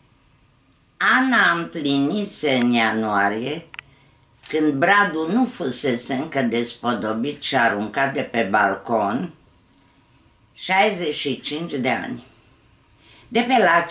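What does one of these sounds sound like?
An elderly woman reads aloud calmly, close by.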